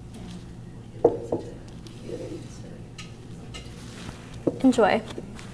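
Plates clink and knock onto a table.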